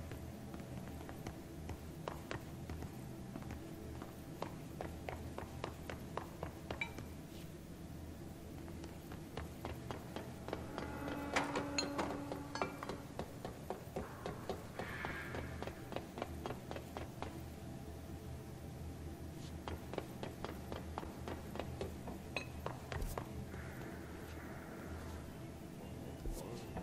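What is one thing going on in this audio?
Footsteps tap quickly on hard floors and metal grating.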